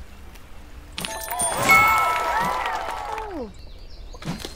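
Game sound effects chime brightly as clouds clear away.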